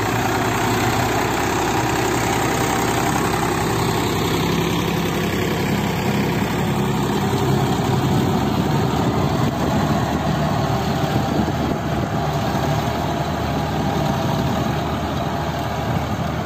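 A rotary tiller churns through soil with a rough grinding noise.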